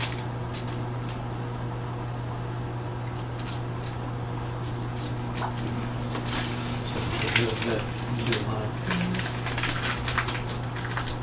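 Paper rustles and crinkles in a woman's hands.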